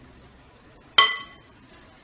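A spoon clinks against a glass bowl.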